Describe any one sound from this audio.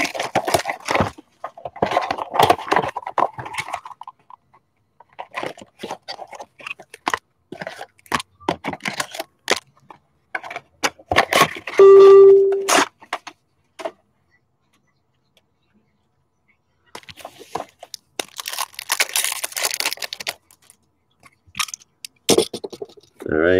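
Foil wrappers crinkle and rustle as hands open card packs.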